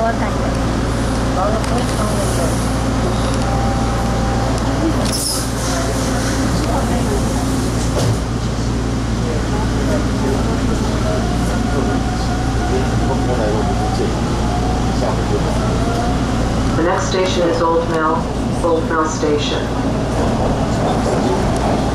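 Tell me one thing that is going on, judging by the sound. A subway train rumbles steadily along the tracks.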